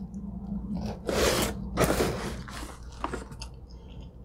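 Pizza crust crunches and tears close by.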